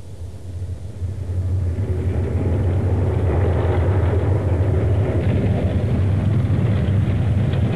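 A car engine rumbles low and grows louder as the car drives closer.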